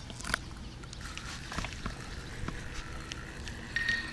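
A fishing reel clicks and whirs as a hand turns it.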